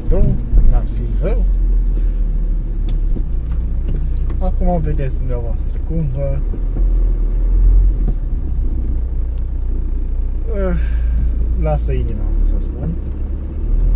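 A man talks calmly and close by inside a car.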